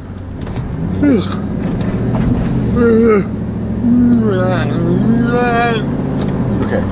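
A man sings loudly and with passion close by.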